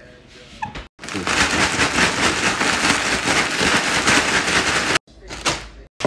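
A plastic bag crinkles loudly as hands squeeze and knead it.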